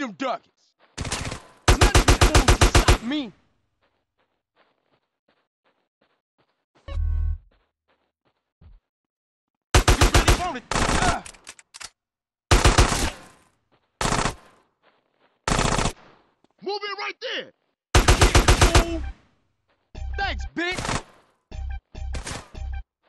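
A rifle fires rapid bursts of loud shots.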